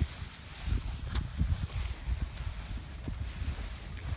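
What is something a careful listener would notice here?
Grass rustles as a person walks through it.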